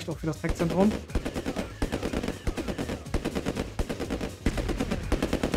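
Guns fire in short, regular bursts.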